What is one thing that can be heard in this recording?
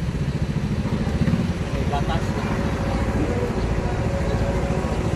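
A motorcycle engine runs nearby.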